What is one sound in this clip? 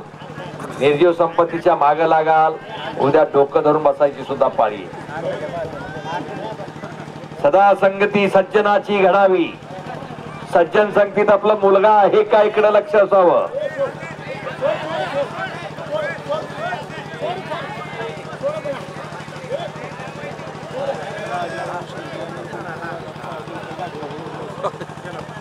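A crowd of men murmurs and chatters outdoors.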